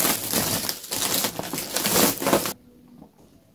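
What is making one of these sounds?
Fabric rustles under a young woman's hands.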